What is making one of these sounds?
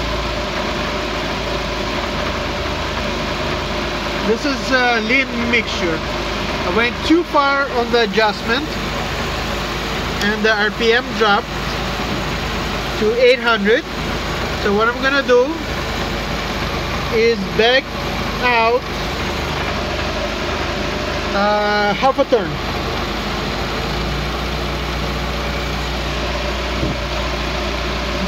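A car engine idles steadily close by.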